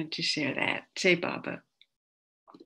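An elderly woman speaks warmly over an online call.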